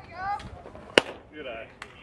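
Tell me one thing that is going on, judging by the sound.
A bat cracks against a softball.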